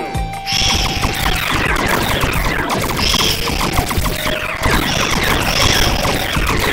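Upbeat game music plays.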